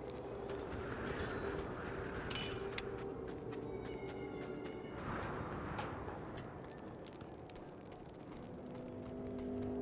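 Footsteps run over gravel and wooden boards.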